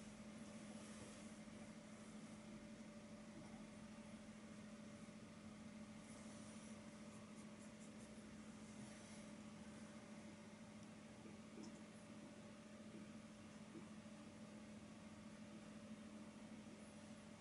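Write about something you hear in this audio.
A brush softly scrapes across a canvas.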